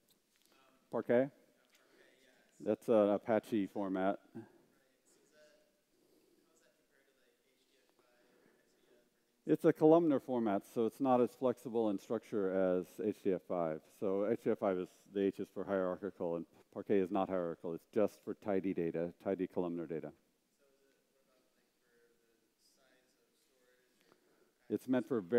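A man speaks calmly into a microphone in a large hall, pausing between phrases.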